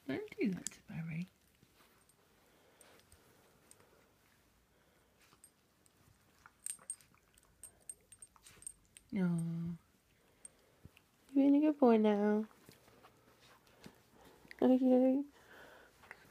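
A small dog whines and yelps in short high bursts.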